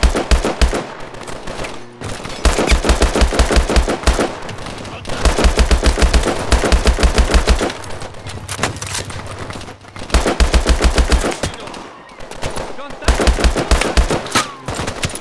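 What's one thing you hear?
An automatic rifle fires in rapid bursts.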